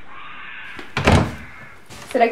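A wooden door thuds as it swings open.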